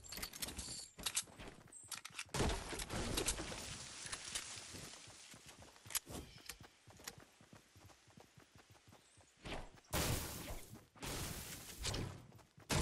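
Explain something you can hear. Footsteps patter quickly on grass and stone.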